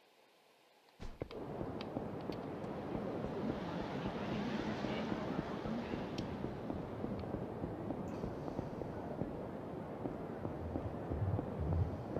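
A busy street hums with crowd noise and traffic.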